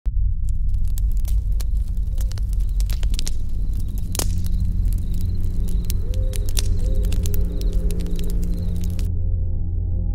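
A campfire crackles and pops.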